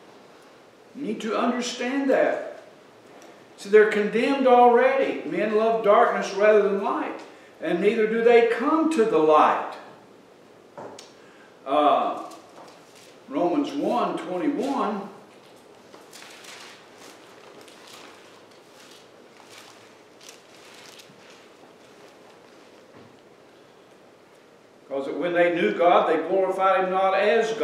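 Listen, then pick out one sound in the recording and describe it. An older man speaks calmly through a microphone, pausing between phrases.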